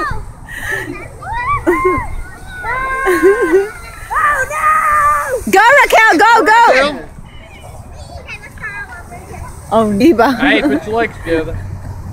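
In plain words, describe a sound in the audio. Young girls shout and squeal excitedly outdoors.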